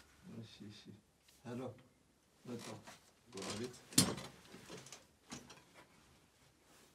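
A young man talks nearby in a calm voice.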